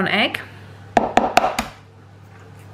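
An eggshell cracks against the rim of a plastic cup.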